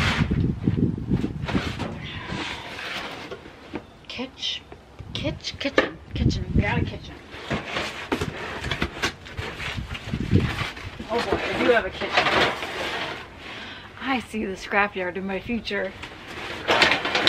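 Cardboard boxes scrape and thump as they are moved.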